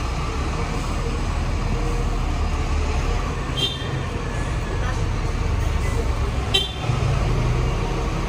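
A parked van's engine idles nearby with a steady low rumble.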